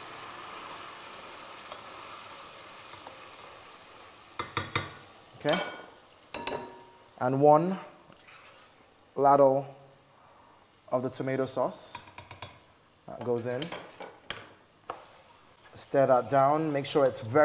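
A wooden spoon scrapes and knocks in a metal pot.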